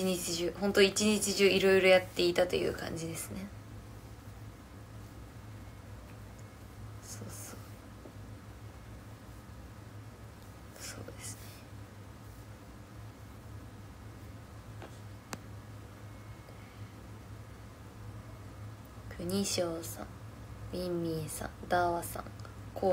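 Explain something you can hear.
A young woman speaks close to a microphone, calmly, with pauses.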